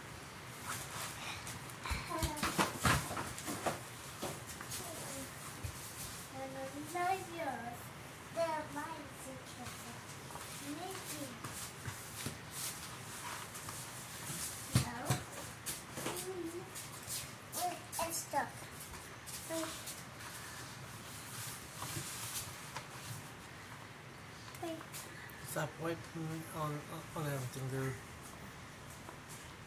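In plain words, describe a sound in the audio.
Hands knead and squish dough in a plastic bowl.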